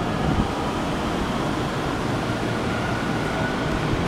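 A train rolls past nearby with a low rumble.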